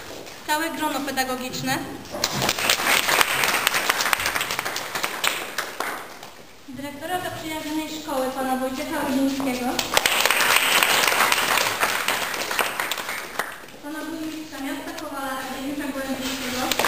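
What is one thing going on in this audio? A group of young voices sings together in an echoing hall.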